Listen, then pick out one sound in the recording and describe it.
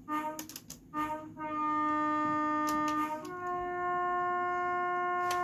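A train horn sounds in short blasts, then holds a long steady blast that drops in pitch.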